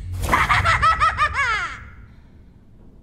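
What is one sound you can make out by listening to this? A young girl laughs eerily, close by.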